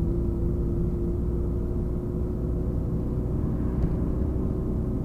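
Another car passes by in the opposite direction.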